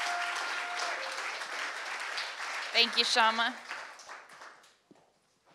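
An audience applauds in a large room, then the clapping fades.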